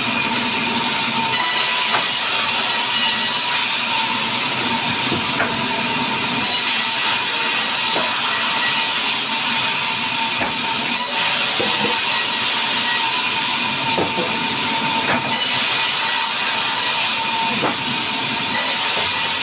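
Logs thud and knock as they are pushed onto the saw.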